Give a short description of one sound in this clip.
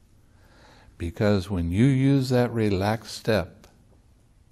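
An elderly man speaks calmly and expressively into a nearby microphone.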